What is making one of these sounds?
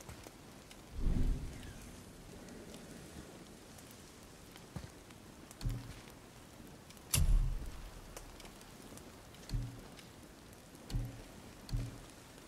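Game menu sounds thump softly as options are selected.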